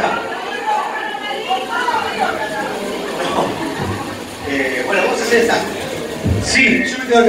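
A band plays live with guitars.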